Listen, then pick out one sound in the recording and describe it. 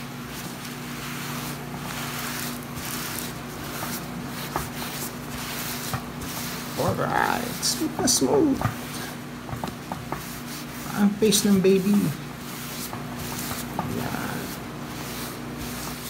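A paper towel wipes softly across skin.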